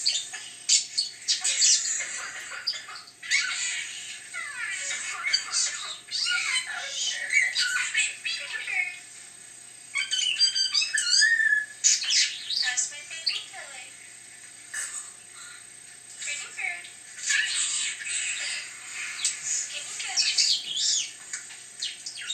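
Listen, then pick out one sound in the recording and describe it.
A budgerigar chirps and warbles close by.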